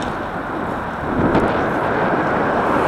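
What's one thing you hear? A car passes close by with a rushing swell.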